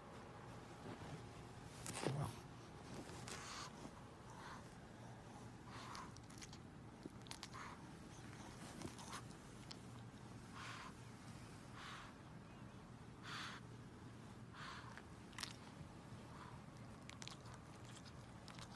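A pug breathes.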